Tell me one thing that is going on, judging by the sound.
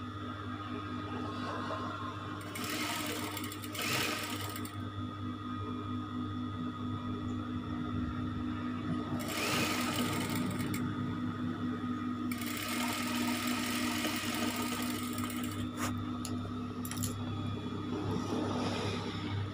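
A sewing machine hums and whirs as it stitches fabric.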